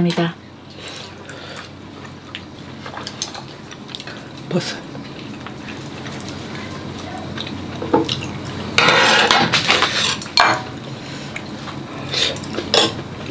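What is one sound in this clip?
Two women chew and slurp food close by.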